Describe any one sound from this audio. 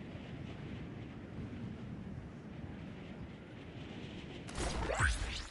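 Wind rushes softly past a gliding game character.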